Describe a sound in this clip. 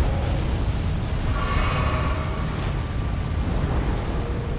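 A fiery blast bursts with a loud roar.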